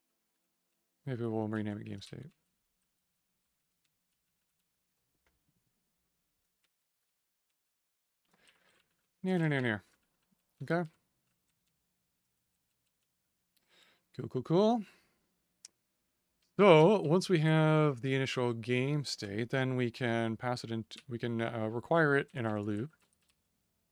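A man talks calmly into a close microphone, in short bursts.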